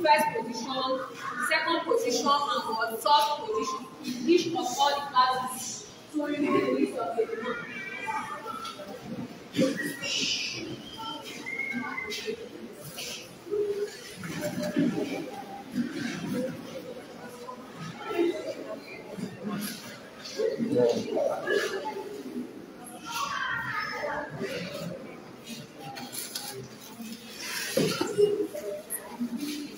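A woman sings nearby with feeling.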